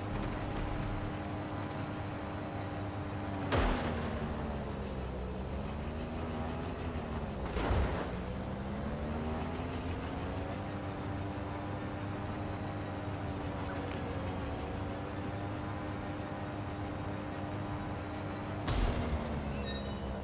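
A hovering drone's engine hums steadily, its pitch dipping and rising as it flies.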